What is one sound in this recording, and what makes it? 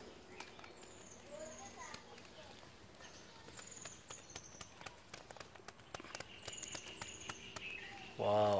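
Small fish drop out of a shaken bamboo trap onto bare earth.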